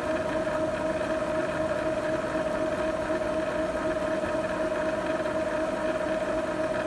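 A printer's print head whirs steadily back and forth with a mechanical hum.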